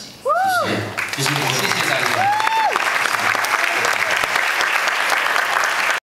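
An audience cheers and shouts loudly.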